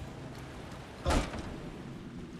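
A heavy door bangs open.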